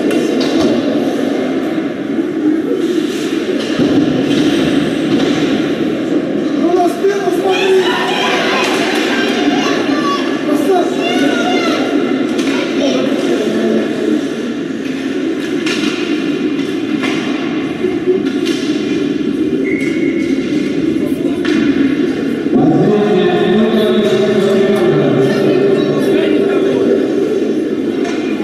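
A crowd of spectators chatters and cheers in a large echoing arena.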